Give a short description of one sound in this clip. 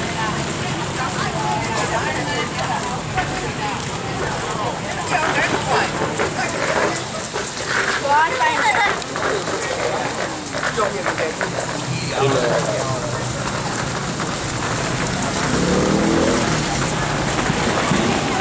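Footsteps patter on a wet road.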